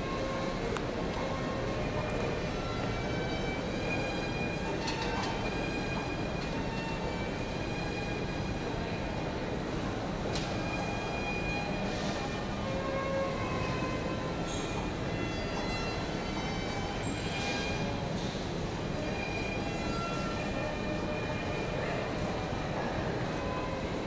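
A crowd of people chatters in a large echoing hall.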